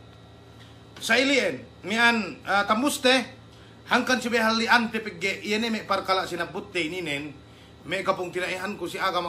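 A young man speaks with animation through an online call.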